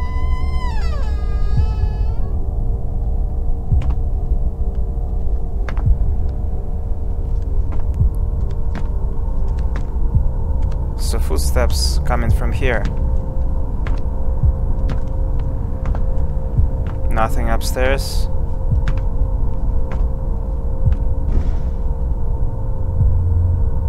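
A young man speaks quietly into a microphone.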